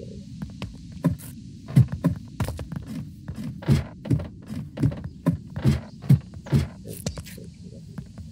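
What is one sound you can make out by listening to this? Footsteps knock on a wooden ladder at an even pace.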